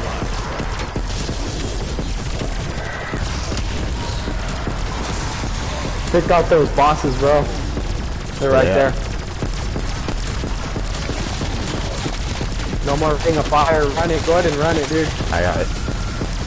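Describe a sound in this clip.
Gunfire from a video game rattles steadily.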